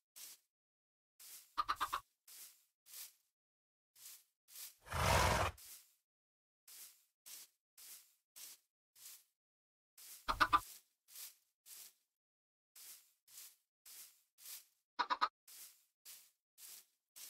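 Footsteps tap steadily on a hard block floor.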